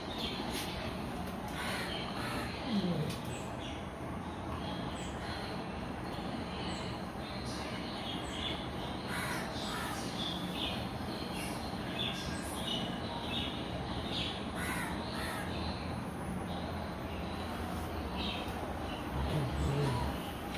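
Dog claws scrape and tap on a hard floor.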